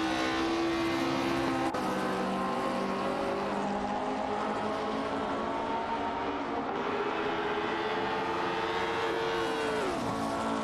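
Other racing car engines whine nearby.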